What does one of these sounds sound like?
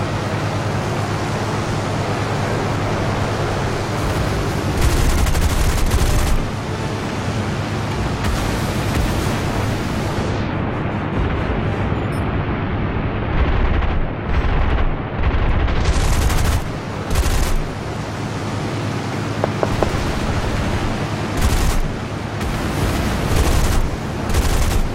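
Machine guns fire in loud bursts.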